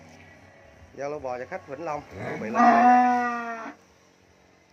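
A cow moos loudly and long, close by.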